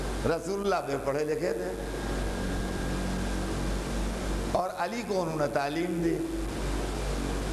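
An elderly man speaks with feeling into a microphone, his voice amplified.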